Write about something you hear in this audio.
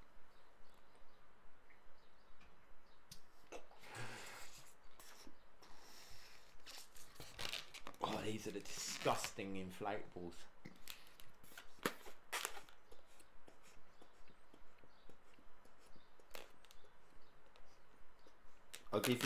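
A man blows air into a balloon in strong puffs.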